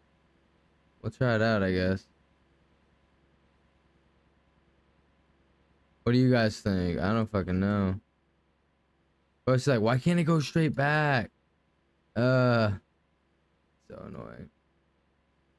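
A man speaks casually in short bursts, close to a microphone.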